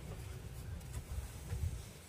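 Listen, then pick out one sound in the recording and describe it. A pigeon flaps its wings in flight.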